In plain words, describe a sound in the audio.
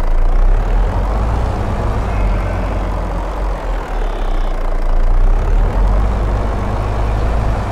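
A truck engine rumbles steadily at idle.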